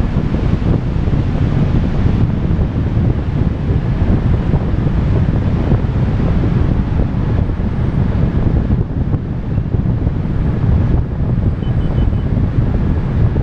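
Strong wind roars and buffets loudly against the microphone.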